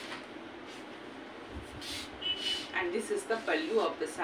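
Cloth rustles as fabric is unfolded and shaken.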